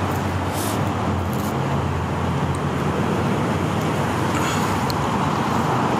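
Small plastic caps rustle as a hand picks them up off the ground.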